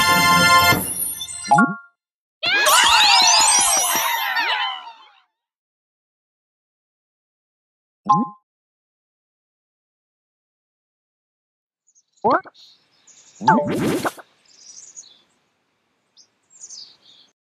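Bright electronic game jingles and chimes play in short bursts.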